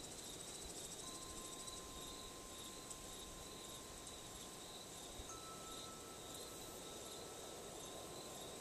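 Metal wind chimes ring softly with long, lingering tones.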